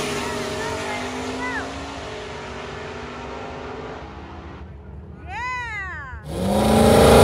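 Car engines roar as cars race away in the distance.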